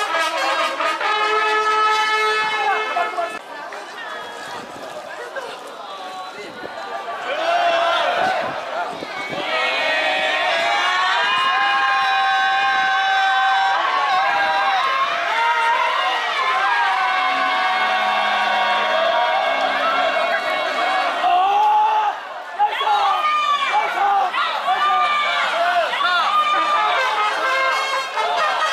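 A crowd of men chant loudly together outdoors.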